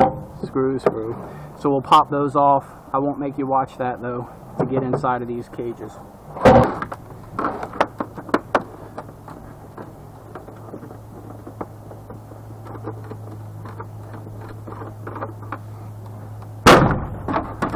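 Plastic parts click and knock as a casing is pried apart.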